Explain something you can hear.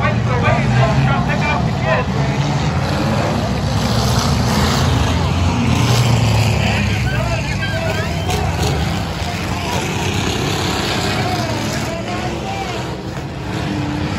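Race car engines roar steadily around a track outdoors.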